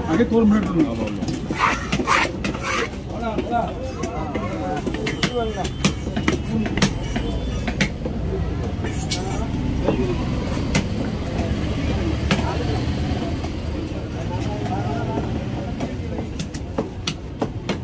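A knife chops and scrapes against a wooden block.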